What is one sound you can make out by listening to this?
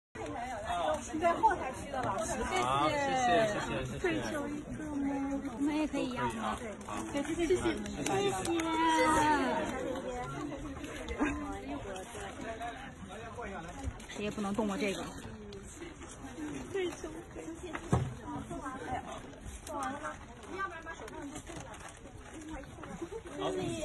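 A crowd of young women chatters and squeals excitedly nearby.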